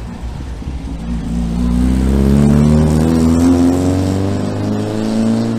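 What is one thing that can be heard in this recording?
An old van engine revs up as the van pulls away.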